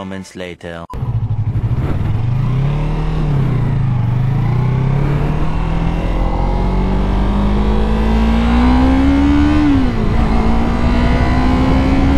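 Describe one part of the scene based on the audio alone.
A motorcycle engine hums and rises in pitch as it speeds up, then drops as the rider shifts gear.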